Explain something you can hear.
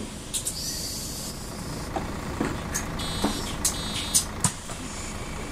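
Bus doors hiss and thud shut.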